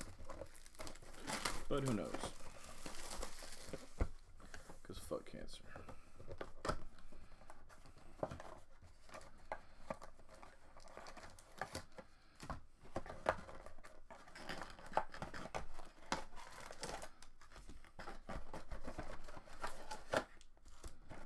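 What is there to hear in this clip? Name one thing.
Card packaging rustles and crinkles in someone's hands.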